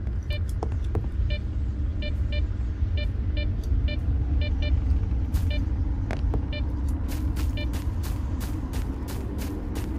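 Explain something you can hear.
Footsteps rustle through tall grass outdoors.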